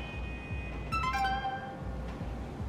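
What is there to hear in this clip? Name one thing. A short electronic chime rings out once.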